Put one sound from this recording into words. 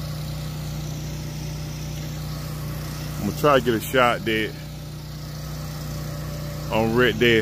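An air blower hums steadily outdoors.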